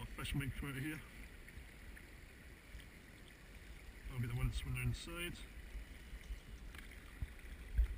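A net scrapes and splashes in a stream bed.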